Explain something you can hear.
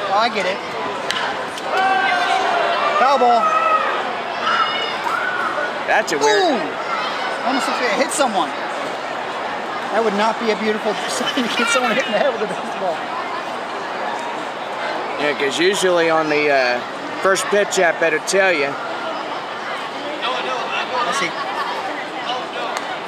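A crowd of spectators murmurs and chatters in an open-air stadium.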